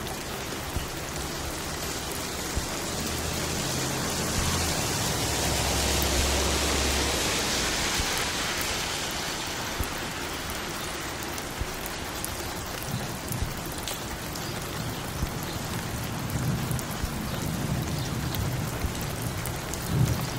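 A vinyl record crackles and hisses on a turntable.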